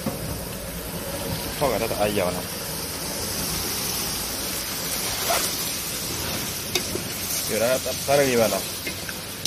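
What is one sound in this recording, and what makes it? Water boils and bubbles steadily in a large pot.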